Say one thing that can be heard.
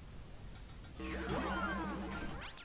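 A game character spins with a sparkling, sweeping whoosh.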